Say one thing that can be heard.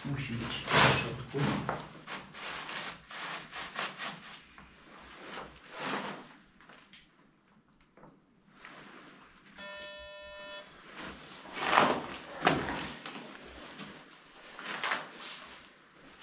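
Loose papers rustle and crunch as someone rummages through them close by.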